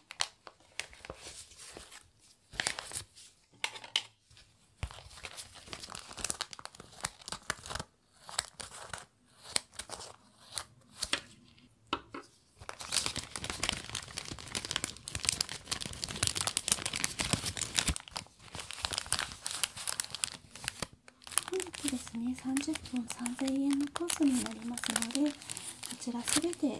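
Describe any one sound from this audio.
Thin plastic crinkles and rustles close by.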